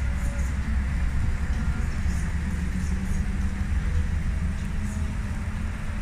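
A motorcycle engine hums as the motorcycle rides past along a road.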